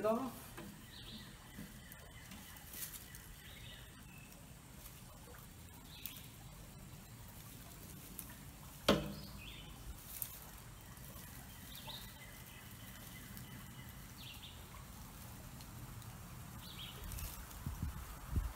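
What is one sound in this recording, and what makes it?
Birds chirp nearby outdoors.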